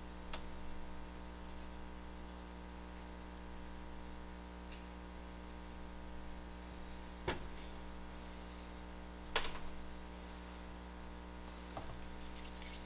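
Clay moulds knock softly against a table.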